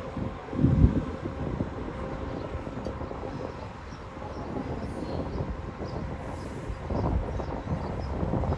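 A bus engine rumbles as the bus climbs slowly up a steep street toward the listener.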